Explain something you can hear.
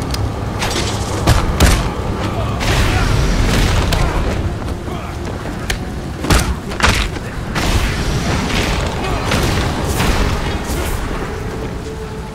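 A blade strikes and smashes skeletons with sharp clattering hits.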